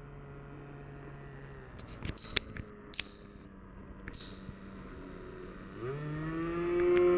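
A small model airplane engine buzzes overhead, rising in pitch and growing louder as it passes close.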